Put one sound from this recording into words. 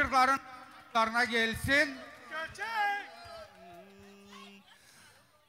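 A man sings loudly through a microphone and loudspeakers outdoors.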